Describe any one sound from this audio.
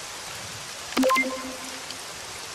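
A short electronic chime rings.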